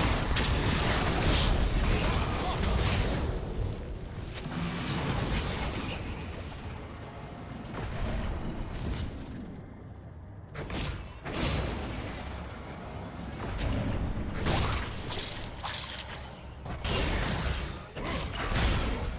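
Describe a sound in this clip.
Magical spell effects whoosh and crackle in bursts.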